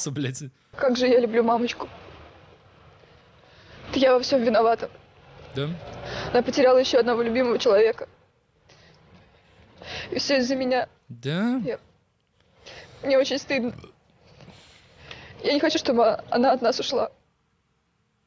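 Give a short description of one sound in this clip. A young woman speaks with emotion, heard through a television broadcast.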